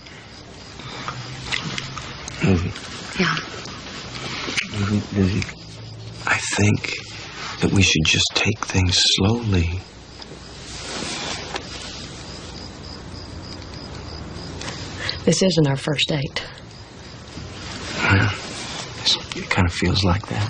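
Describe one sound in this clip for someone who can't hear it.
A man speaks softly close by.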